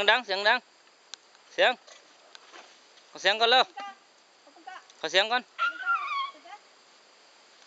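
A man calls out in short, lively bursts close by.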